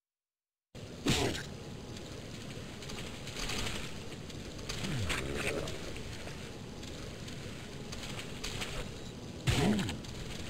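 A monster lets out a rough, snarling growl.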